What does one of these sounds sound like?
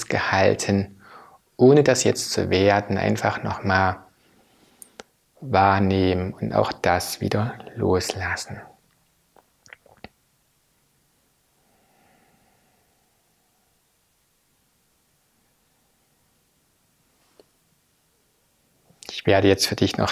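A middle-aged man speaks calmly and softly into a close microphone, pausing often.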